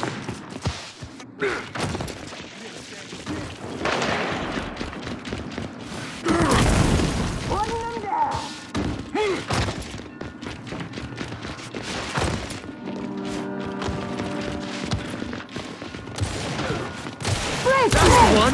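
Heavy footsteps run across stone.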